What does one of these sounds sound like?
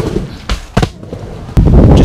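Skateboard wheels roll on a wooden ramp.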